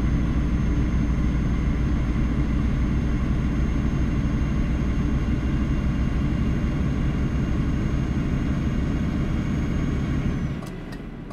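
A truck engine rumbles steadily, then quiets.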